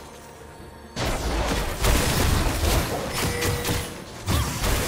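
Video game spells and hits crash and whoosh in a busy fight.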